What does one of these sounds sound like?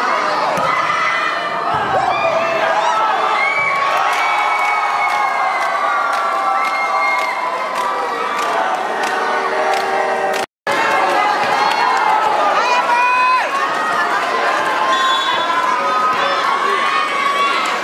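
A volleyball is struck with hard slaps.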